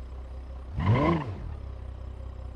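A car engine revs up sharply and quickly drops back.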